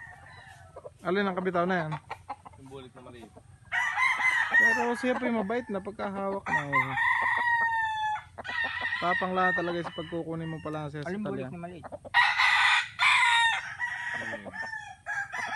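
A young man speaks close by, with animation.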